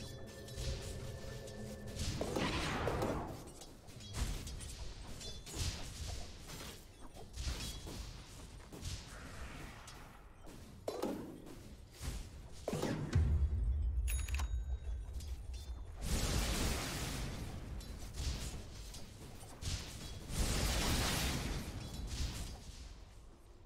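Video game combat sound effects play, with crackling lightning spells.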